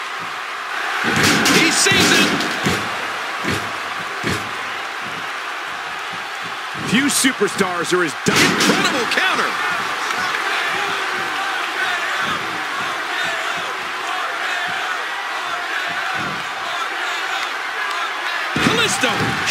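Heavy thuds of bodies slamming onto a wrestling mat.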